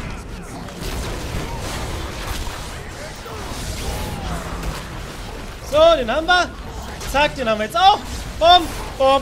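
Game spell effects whoosh and clash.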